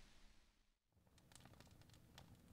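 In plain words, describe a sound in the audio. A wood fire crackles softly.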